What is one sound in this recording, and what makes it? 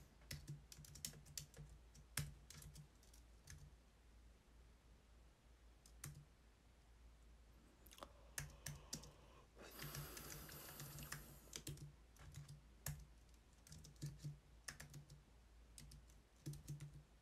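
Keyboard keys click in quick bursts of typing.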